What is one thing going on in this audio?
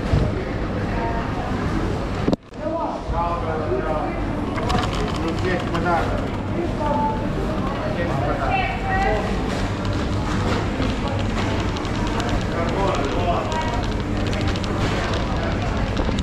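A shopping cart rattles as it rolls over a hard floor.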